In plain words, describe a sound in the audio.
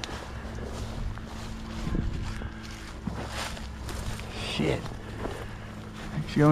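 A dog rustles through tall dry grass.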